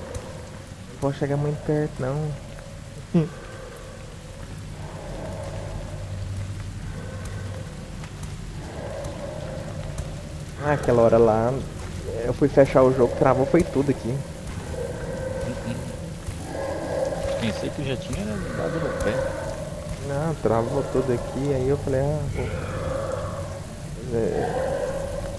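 A man talks excitedly close to a microphone.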